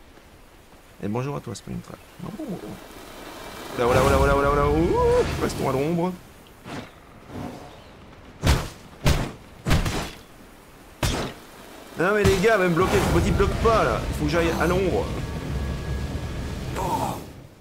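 A young woman talks with animation.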